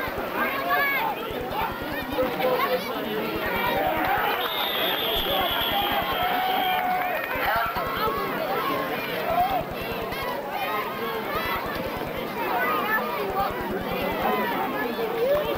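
A crowd of men and women talks and calls out outdoors.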